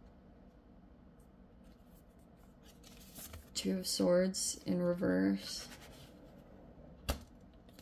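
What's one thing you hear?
Playing cards rustle and tap softly as they are handled.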